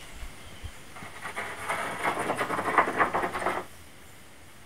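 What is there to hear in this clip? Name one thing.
Water sloshes and splashes as a pole stirs it in a well.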